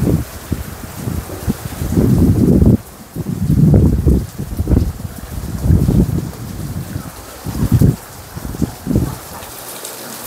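Wind gusts rumble outdoors in bursts.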